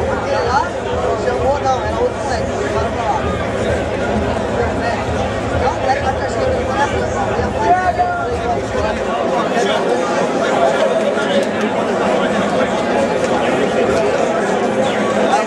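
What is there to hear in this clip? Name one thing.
Men talk and argue loudly nearby.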